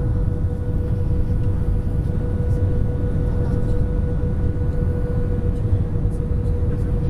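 Jet engines roar steadily with a low rumble inside an airliner cabin.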